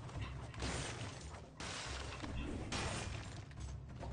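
Blades slash and strike with sharp hits.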